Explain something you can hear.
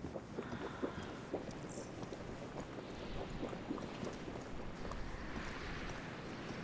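Footsteps tread softly on stone.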